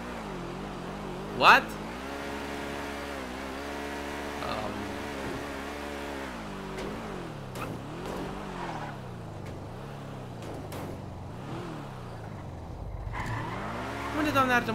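A sports car engine hums and revs up and down as the car speeds along.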